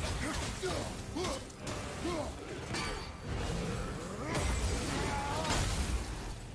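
Heavy blows and explosions boom in a fight.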